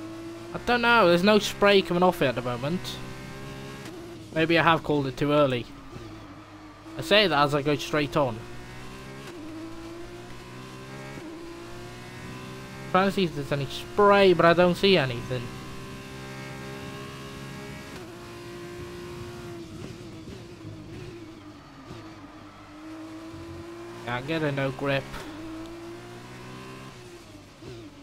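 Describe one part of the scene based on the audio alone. A racing car engine whines steadily and revs up and down through gear changes.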